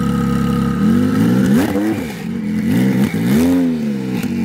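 A sports car engine revs up and down.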